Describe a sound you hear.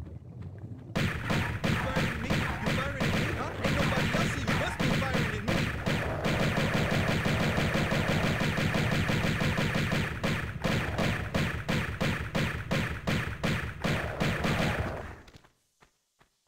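Pistols fire rapidly, shot after shot.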